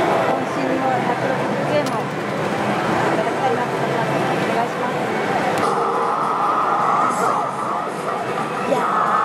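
A slot machine plays bright electronic music and jingles.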